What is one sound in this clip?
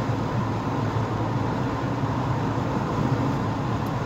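A heavy truck rumbles close by.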